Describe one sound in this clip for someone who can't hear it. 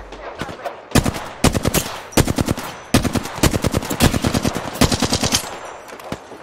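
A rifle fires loud rapid bursts of shots.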